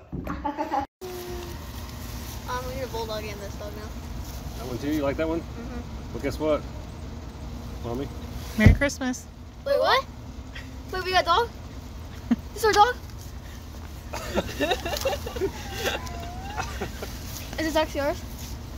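Young boys talk and exclaim excitedly outdoors.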